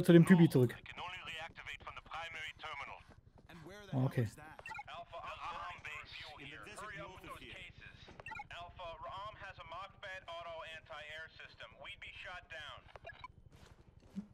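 A young man talks calmly into a close microphone.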